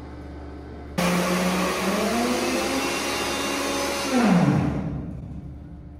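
A pneumatic drill roars loudly, then winds down.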